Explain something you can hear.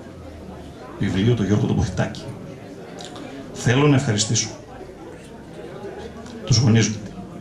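A man speaks calmly into a microphone in short phrases.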